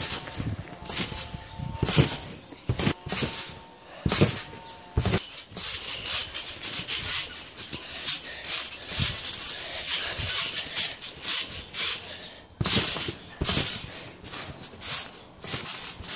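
A trampoline mat thumps and creaks under bouncing feet.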